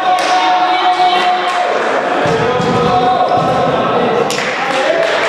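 Young men shout and cheer together in a large echoing hall.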